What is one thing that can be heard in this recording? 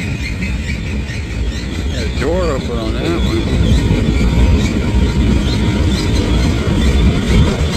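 A freight train rumbles and clatters steadily past on the tracks.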